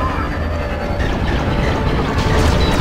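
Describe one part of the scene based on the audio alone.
Laser blasts fire in quick bursts.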